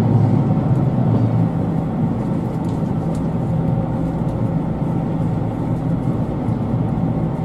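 A train hums and rumbles steadily as it rides along.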